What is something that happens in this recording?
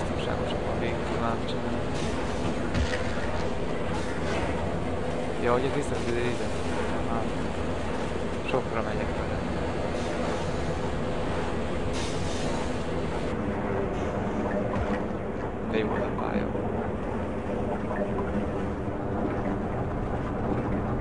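Footsteps clank on metal floors.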